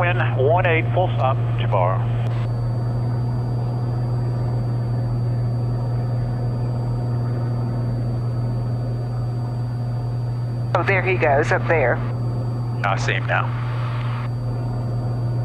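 A small airplane engine drones steadily.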